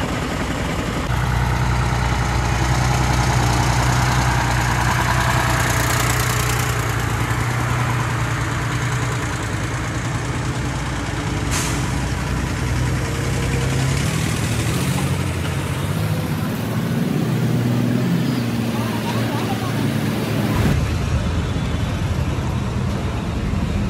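A heavy truck engine rumbles as it moves slowly past.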